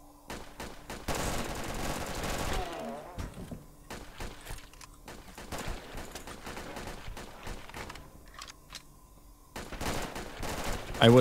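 Rapid rifle shots fire in bursts.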